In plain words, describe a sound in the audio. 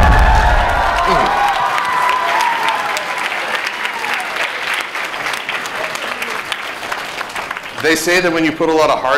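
A large audience claps and applauds.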